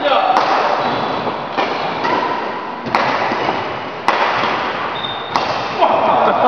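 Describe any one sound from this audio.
Badminton rackets strike a shuttlecock with sharp pops that echo in a large hall.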